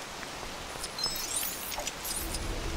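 A bright magical chime rings out with rising tinkles.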